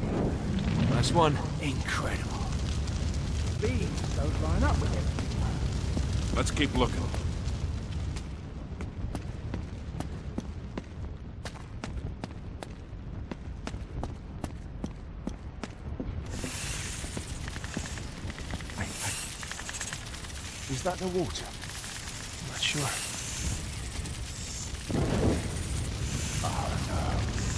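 Torch flames crackle softly.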